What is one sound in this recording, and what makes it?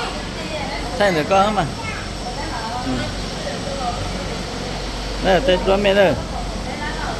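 A young woman speaks loudly in short bursts.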